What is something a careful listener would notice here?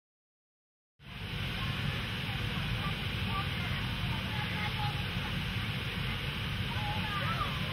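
Wind rumbles steadily across an open outdoor space.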